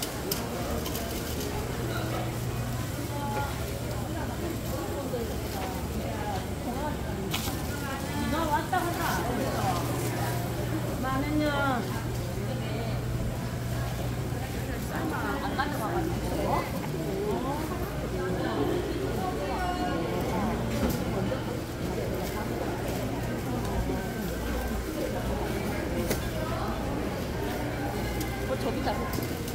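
A crowd of shoppers chatters in a busy covered market.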